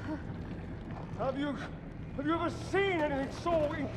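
A middle-aged man speaks with awe, his voice echoing.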